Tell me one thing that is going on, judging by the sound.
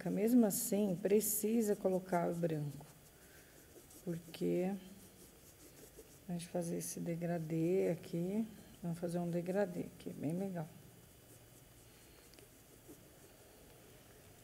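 A paintbrush brushes softly on paper.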